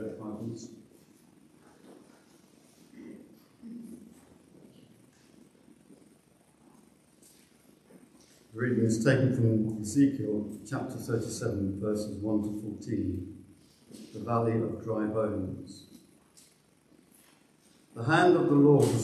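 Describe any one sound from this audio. An elderly man reads aloud calmly through a microphone in a large echoing hall.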